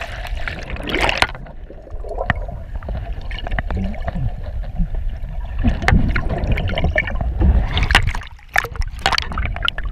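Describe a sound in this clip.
Water rushes and burbles, muffled underwater.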